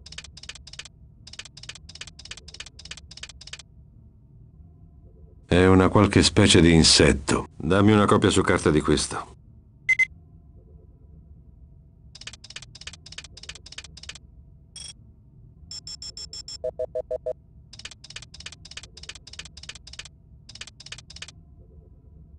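An electronic device ticks rapidly in short bursts.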